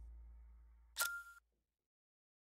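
A short menu chime rings out.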